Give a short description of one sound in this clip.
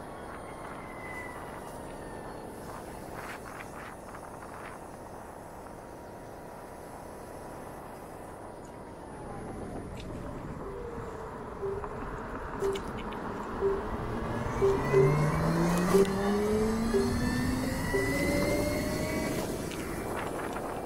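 A motorcycle engine hums steadily and then revs up as it accelerates.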